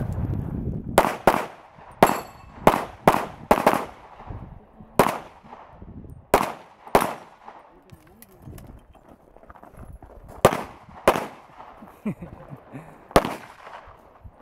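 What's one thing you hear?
A pistol fires a rapid series of loud shots outdoors, with short pauses between bursts.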